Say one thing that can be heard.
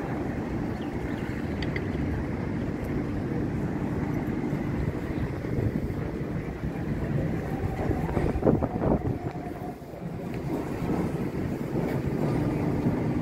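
Low city noise and wind rumble fill the air outdoors.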